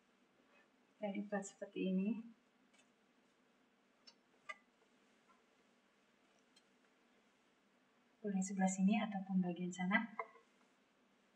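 A woman speaks calmly and briefly, close by.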